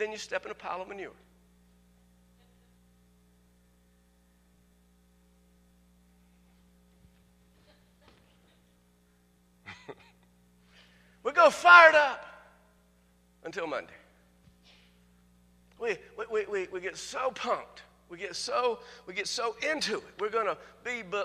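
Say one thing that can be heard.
A middle-aged man speaks with animation through a microphone, with long pauses.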